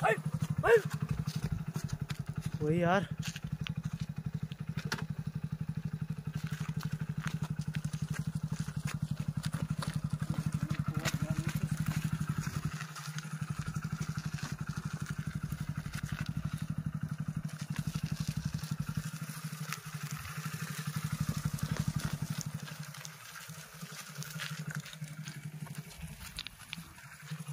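A motorcycle engine idles with a steady, fast putter.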